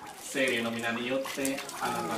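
Water pours and splashes.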